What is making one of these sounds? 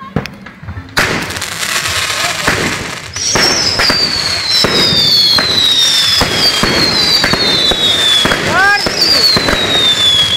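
A ground fountain firework hisses and roars as it sprays sparks outdoors.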